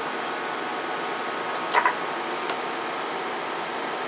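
A knob clicks as it is turned.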